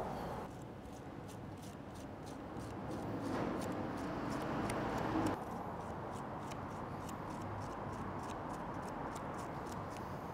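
A spoon scrapes softly against a cucumber.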